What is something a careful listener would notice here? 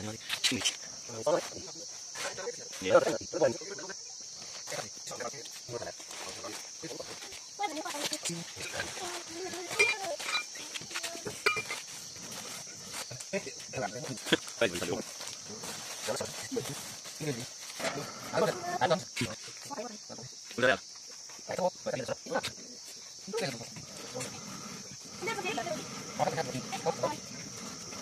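A hand quern grinds grain, stone rasping on stone as it turns.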